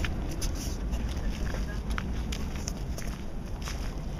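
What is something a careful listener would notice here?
Footsteps scuff on stone steps outdoors.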